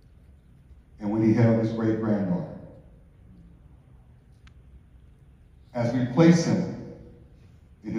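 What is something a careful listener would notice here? A man speaks slowly and solemnly into a microphone, with long pauses.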